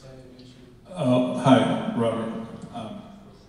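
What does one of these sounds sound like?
A man speaks from the audience.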